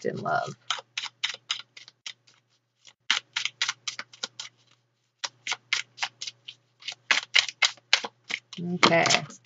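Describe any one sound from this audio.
Playing cards are shuffled with quick, crisp flicks.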